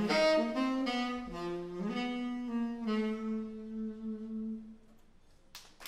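A saxophone plays a slow melody up close.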